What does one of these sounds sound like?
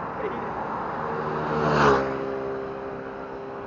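A car drives past close by, its engine rising and then fading.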